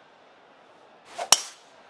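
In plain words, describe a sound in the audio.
A golf club swooshes through the air.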